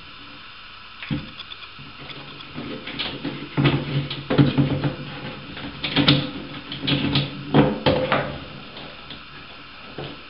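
A screwdriver scrapes and clicks against plastic.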